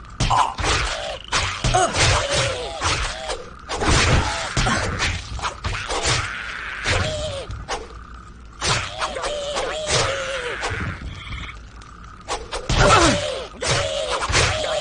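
Swords clash and clang repeatedly in a fight.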